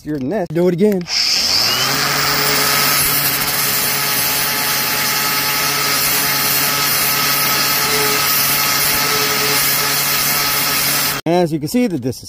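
An angle grinder whirs loudly and grinds against stone.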